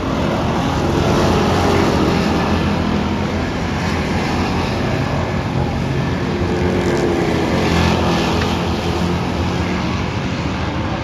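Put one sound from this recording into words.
Engines rev up and down as cars power through the turns.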